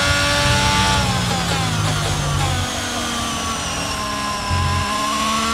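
A Formula One car engine winds down as the car brakes and downshifts.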